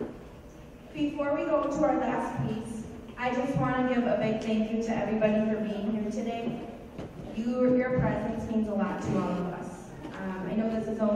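A woman sings through a microphone in a large hall.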